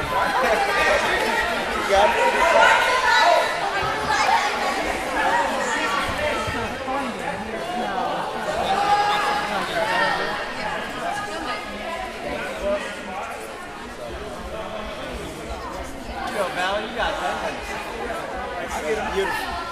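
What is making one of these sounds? Basketball shoes squeak on a wooden court.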